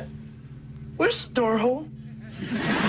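A second young man answers in a raised, excited voice.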